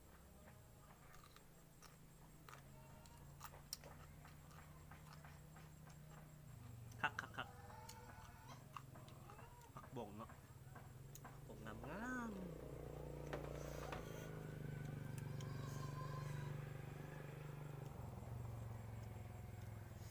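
A young man chews and crunches food close by.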